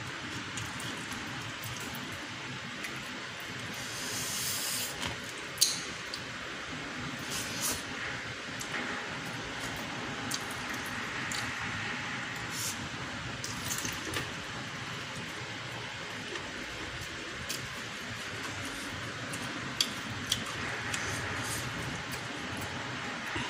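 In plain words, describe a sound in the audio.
A woman chews food loudly and wetly, close up.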